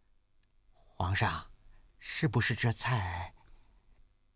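A man speaks calmly and clearly up close.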